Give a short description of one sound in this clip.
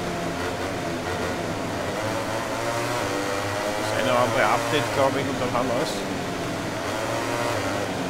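Several motorcycle engines roar steadily at high revs, close by.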